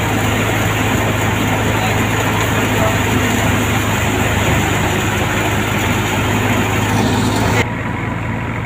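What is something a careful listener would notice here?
A threshing machine roars and rattles loudly.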